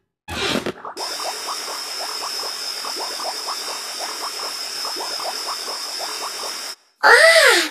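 Soap bubbles foam and pop quickly and steadily.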